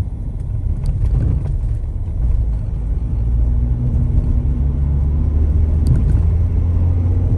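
Tyres roll over asphalt with a low rumble.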